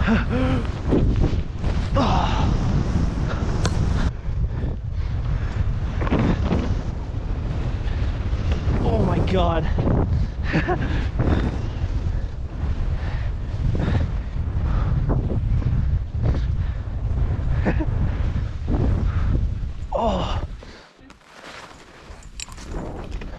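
Skis hiss and swish through deep powder snow.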